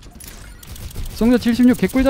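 A weapon fires a humming energy beam.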